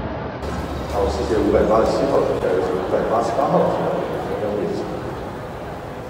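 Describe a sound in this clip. A man speaks loudly over a loudspeaker.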